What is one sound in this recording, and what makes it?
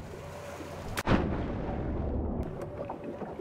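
A wooden crate splashes heavily into water.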